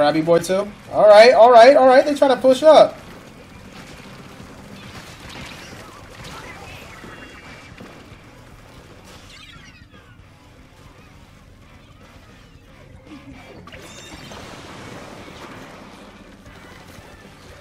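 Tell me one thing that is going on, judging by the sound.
Game weapons spray and splat wet ink.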